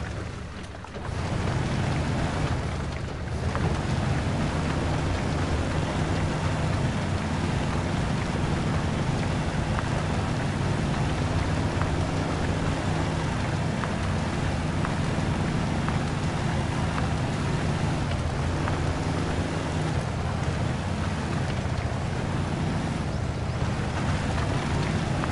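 A truck engine rumbles and strains loudly.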